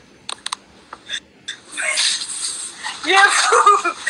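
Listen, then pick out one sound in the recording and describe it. A second young woman laughs over an online call.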